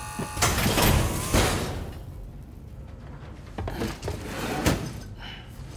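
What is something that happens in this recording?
A mechanical exoskeleton whirs and clanks with heavy thuds as it moves.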